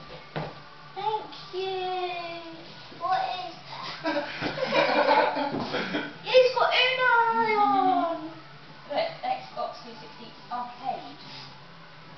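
A boy talks excitedly nearby.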